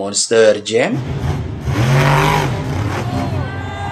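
A monster truck engine revs and roars.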